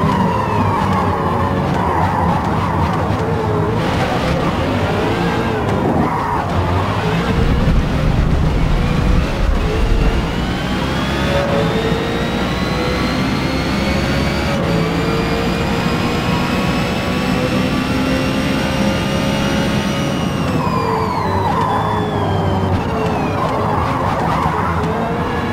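Tyres rumble on the track.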